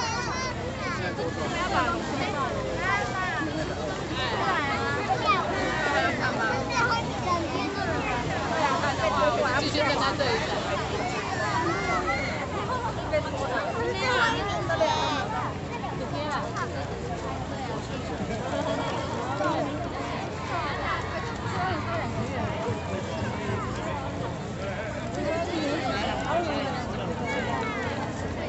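A large crowd chatters and cheers along the riverbank.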